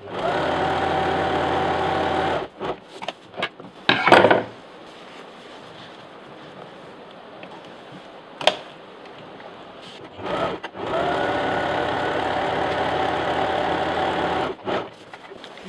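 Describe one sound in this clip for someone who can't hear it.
A sewing machine whirs rapidly, stitching in bursts.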